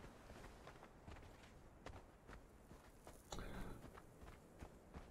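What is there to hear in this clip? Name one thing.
Footsteps crunch quickly on sand and dry ground.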